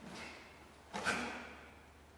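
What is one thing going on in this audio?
A man gives a short, loud shout in an echoing hall.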